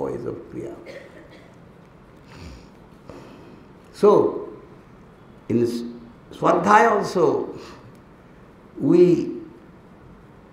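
An elderly man speaks into a microphone in short, emphatic bursts.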